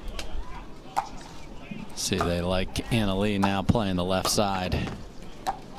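A paddle strikes a ball with sharp hollow pops, back and forth.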